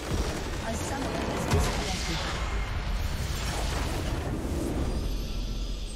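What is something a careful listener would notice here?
A large structure explodes with a deep rumbling boom.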